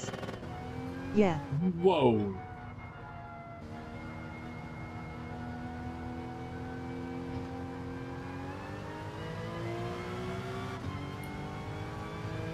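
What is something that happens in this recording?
A racing car engine hums steadily and rises in pitch as the car speeds up.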